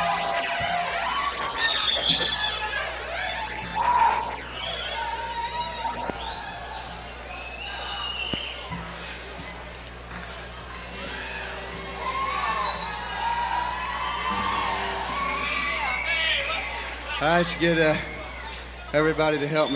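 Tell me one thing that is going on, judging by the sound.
An electric guitar plays loud, wailing notes that bend and slide.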